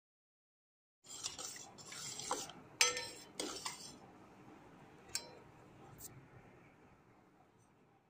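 A metal spoon stirs and scrapes in a pot of liquid.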